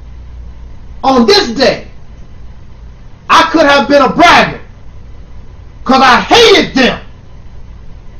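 A man speaks close to the microphone in short, calm phrases with pauses between them.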